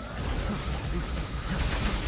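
Blades clash and slash.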